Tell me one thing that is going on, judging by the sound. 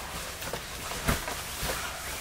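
A body flops onto an inflatable mattress with a dull thump.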